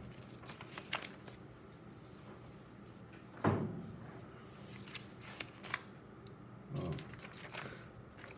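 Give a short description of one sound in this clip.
Light taps and clicks sound on a tabletop.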